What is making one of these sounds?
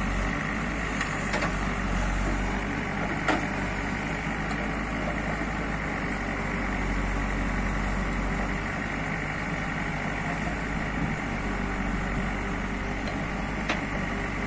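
A diesel engine rumbles steadily close by.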